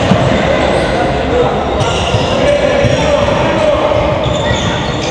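Spectators chatter nearby in a large echoing hall.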